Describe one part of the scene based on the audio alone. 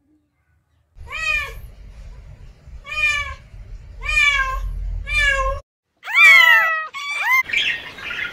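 A kitten mews repeatedly.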